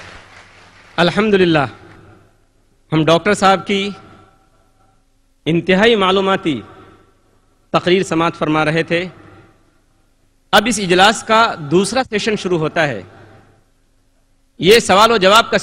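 A man speaks calmly through a microphone in short phrases, with pauses between them.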